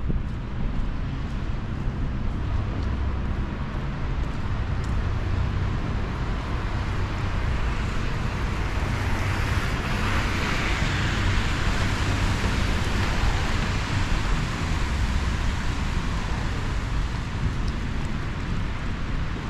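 Car tyres swish through wet slush as traffic passes on a street.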